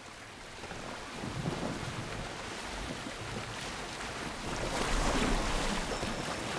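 Water rushes along the hull of a moving sailing boat.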